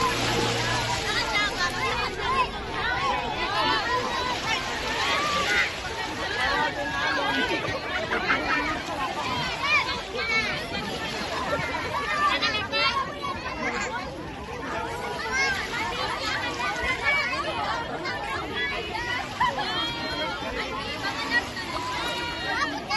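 Water splashes around people wading.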